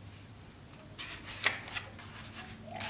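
A book page rustles as it is turned.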